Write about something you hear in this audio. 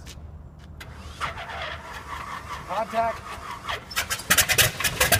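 A biplane's radial engine cranks over with the starter.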